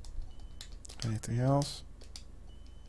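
A young man speaks briefly with a rising tone, close to a microphone.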